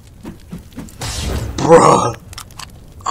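Flames burst with a loud whoosh.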